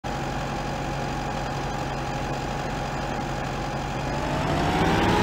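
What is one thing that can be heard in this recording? A tractor engine idles with a low rumble.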